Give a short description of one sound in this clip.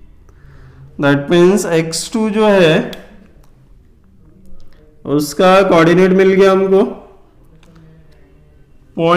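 A man explains calmly into a nearby microphone.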